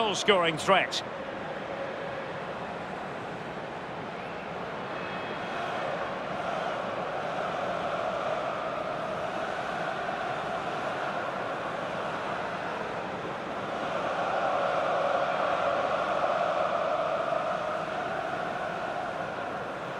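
A large stadium crowd roars and chants steadily, swelling louder at times.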